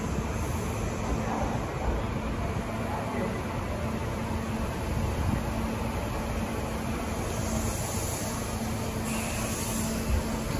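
An electric train rolls slowly into a station with a low rumble.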